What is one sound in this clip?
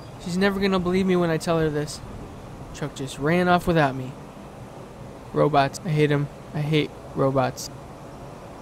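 A young man speaks calmly and close by, with pauses.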